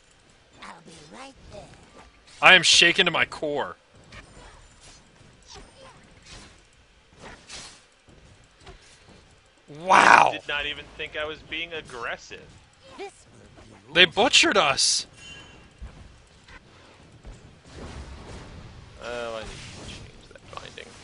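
Magic spells whoosh and burst in quick clashes.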